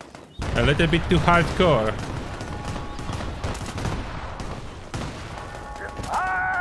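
An explosion booms and fire roars.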